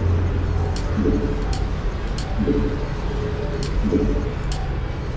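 Short electronic beeps chirp several times.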